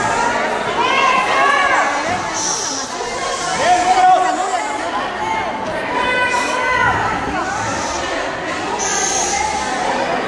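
A woman shouts loudly nearby.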